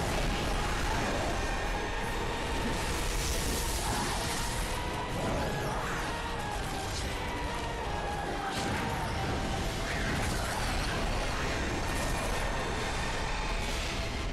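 Magic blasts whoosh and crackle.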